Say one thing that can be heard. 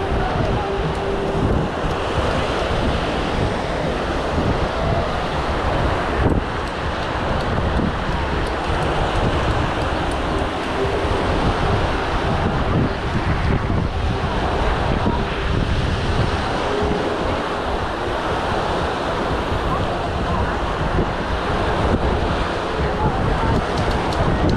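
Wind blows roughly past outdoors.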